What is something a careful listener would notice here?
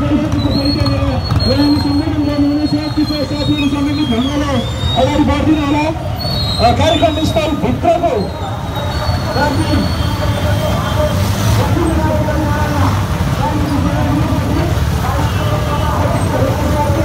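A crowd of men and women shouts and chatters outdoors.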